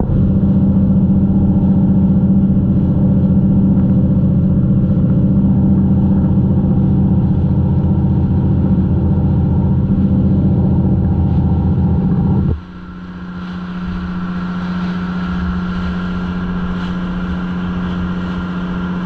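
Water churns and splashes loudly in a boat's wake.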